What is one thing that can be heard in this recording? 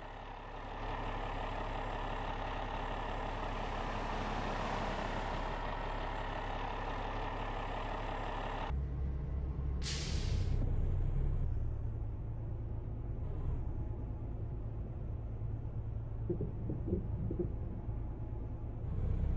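A large truck's diesel engine rumbles steadily, louder at first and then muffled as if heard from inside the cab.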